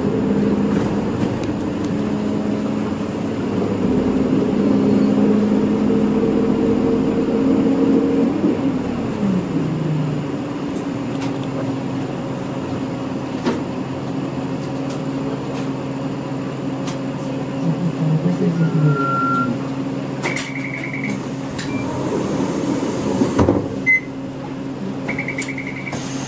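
A vehicle engine hums steadily from inside the vehicle, dropping in pitch as it slows down.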